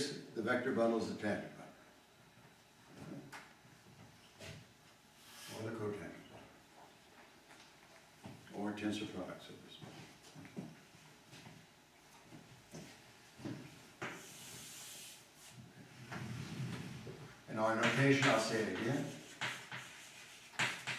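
An elderly man speaks calmly in a room with a slight echo, pausing often.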